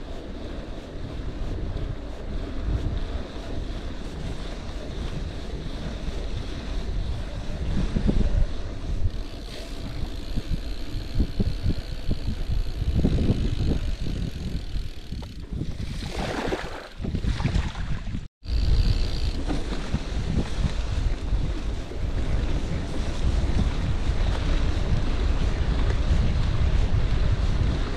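Bicycle tyres crunch and rumble over a gravel track.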